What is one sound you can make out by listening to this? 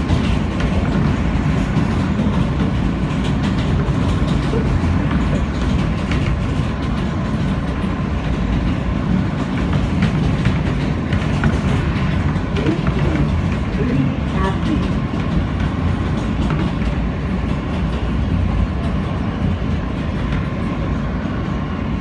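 A subway train rumbles and rattles loudly along the tracks.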